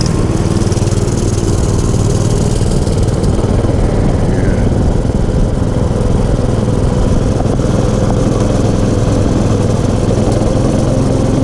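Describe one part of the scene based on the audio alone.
A small engine drones steadily at close range.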